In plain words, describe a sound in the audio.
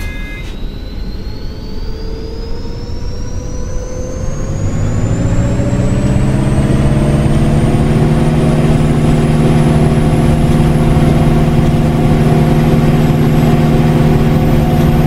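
A bus engine hums and whines, rising steadily in pitch as the bus speeds up.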